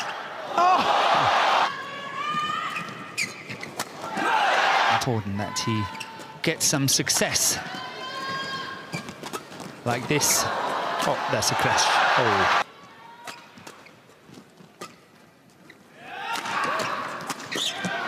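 Shoes squeak sharply on a court floor.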